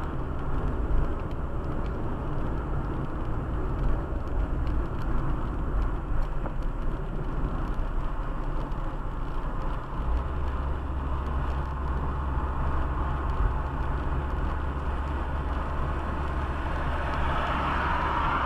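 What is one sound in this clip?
A car engine hums steadily inside the cabin.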